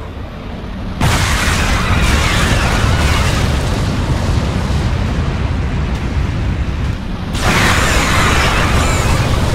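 Huge explosions boom and rumble.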